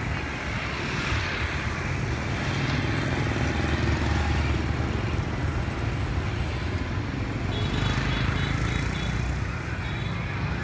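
Motor scooters pass by on a street.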